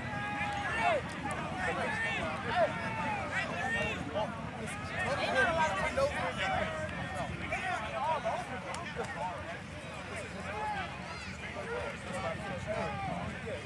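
A crowd chatters and calls out at a distance outdoors.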